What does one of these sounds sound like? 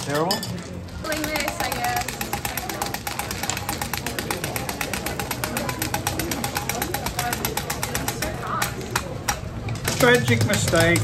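Small hard candies clatter and click against a metal tray as they are scraped along.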